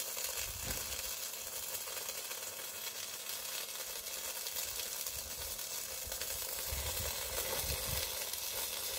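An arc welder crackles and sizzles steadily.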